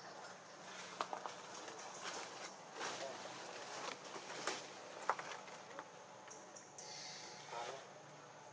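A young monkey squeaks softly nearby.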